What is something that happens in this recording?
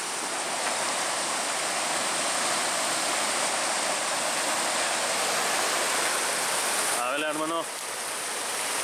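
Water rushes and splashes steadily over a weir nearby.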